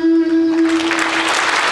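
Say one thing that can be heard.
A group of men sings a held note and stops.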